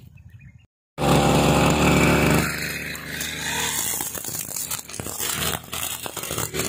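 A grass trimmer engine roars loudly.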